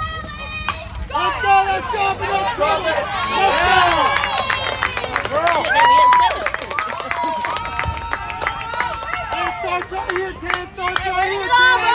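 Young women shout and cheer loudly outdoors.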